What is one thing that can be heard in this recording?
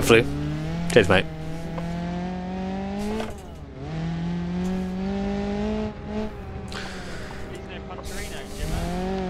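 A car engine hums and revs up, dropping briefly between gear changes.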